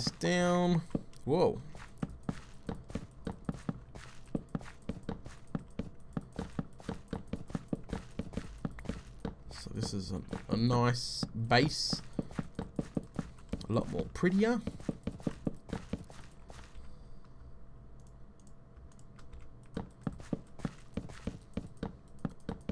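Footsteps tap steadily on a hard floor.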